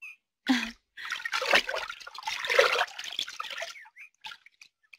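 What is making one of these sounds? Water splashes as a woman swims.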